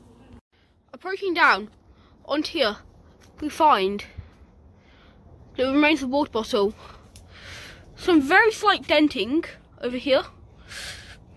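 A child talks with animation close by.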